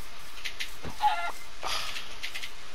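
A chicken squawks sharply.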